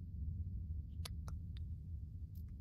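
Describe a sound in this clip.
Soft game interface clicks sound a few times.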